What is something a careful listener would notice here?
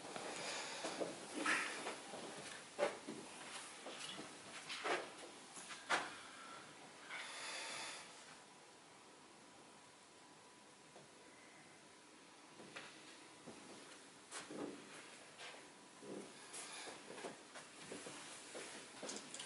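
A middle-aged man speaks calmly in a room with a slight echo.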